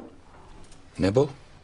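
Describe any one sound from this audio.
A glass knocks on a table.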